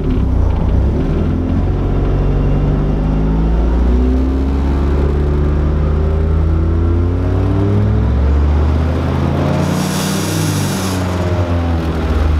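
A car engine revs up and down loudly through a rumbling exhaust.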